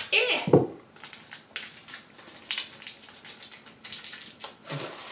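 Small plastic pieces click and rattle as hands handle them.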